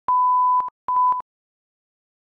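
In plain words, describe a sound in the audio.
A steady high test tone sounds in two bursts.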